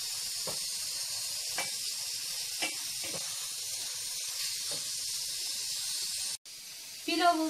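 A wooden spoon scrapes and taps against a metal pot.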